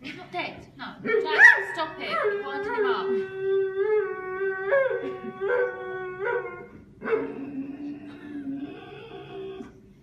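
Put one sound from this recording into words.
A dog howls in long, wavering wails.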